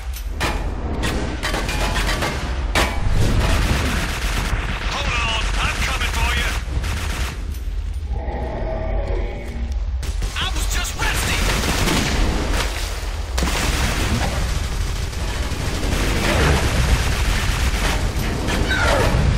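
Magic blasts crackle and boom.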